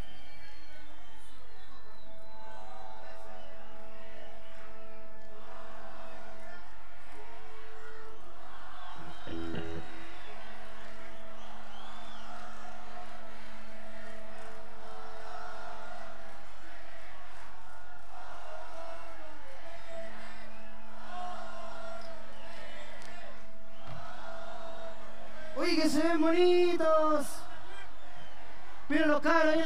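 A band plays a slow, steady tune through loudspeakers.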